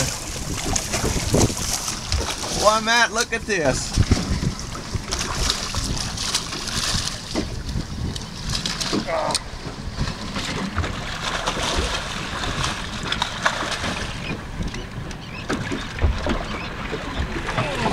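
A fish splashes and thrashes at the water's surface close by.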